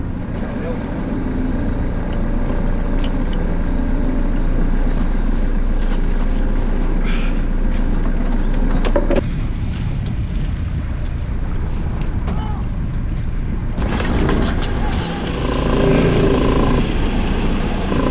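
Lobster pots knock and rattle as a man handles them.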